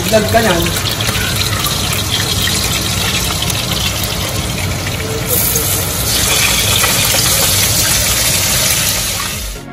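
Food sizzles and spatters in hot oil in a pan.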